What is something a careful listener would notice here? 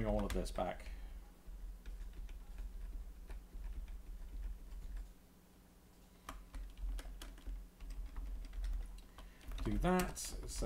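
A keyboard clicks with typing.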